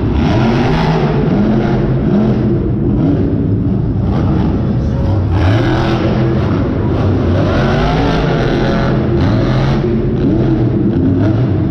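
A monster truck engine roars and revs loudly, rising and falling in pitch.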